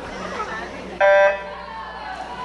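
A start beep sounds once, sharp and electronic.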